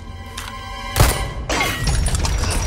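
A chain snaps with a loud crack.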